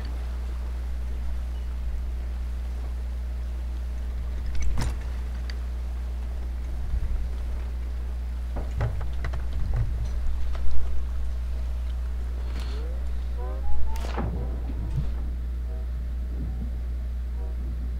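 Wind blows steadily over the sea.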